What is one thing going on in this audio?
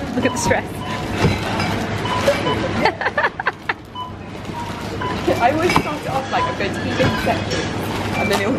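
A checkout scanner beeps repeatedly.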